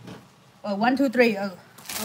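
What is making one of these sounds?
A knife chops leafy greens.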